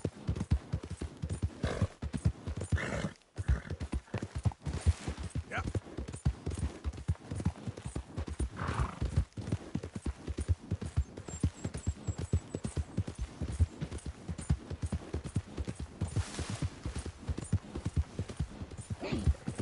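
A horse gallops steadily, its hooves thudding on soft ground.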